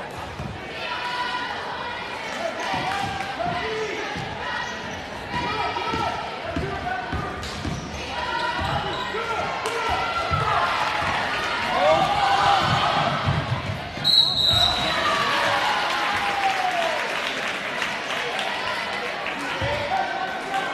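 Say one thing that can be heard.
A basketball bounces with dull thumps on the floor.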